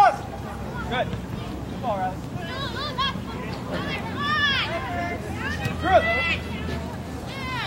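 Young women shout and call out across an open field.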